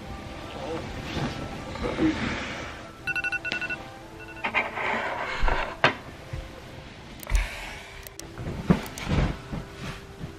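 Bedding rustles and shuffles as someone moves in bed.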